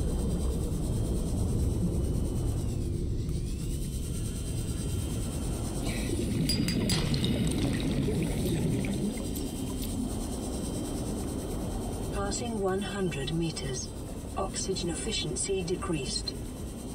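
A low underwater engine rumble drones steadily.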